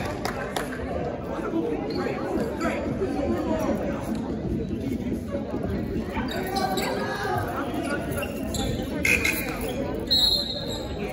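A crowd of spectators chatters in an echoing gym.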